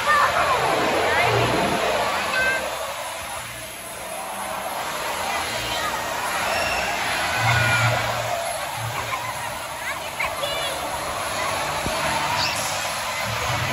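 A large crowd of adults and children chatters and cheers in a large echoing hall.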